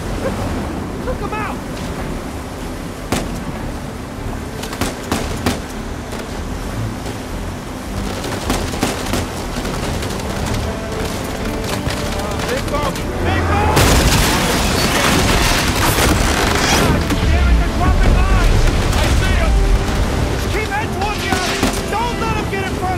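A boat engine roars steadily.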